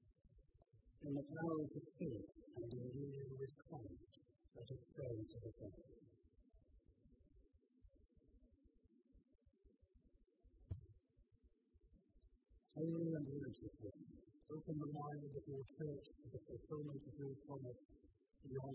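A middle-aged man reads aloud calmly through a microphone in a large echoing hall.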